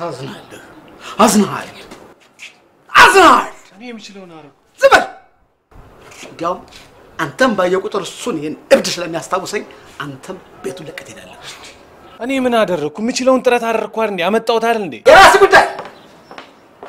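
A younger man talks back loudly and angrily.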